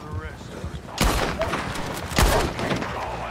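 A rifle fires loudly.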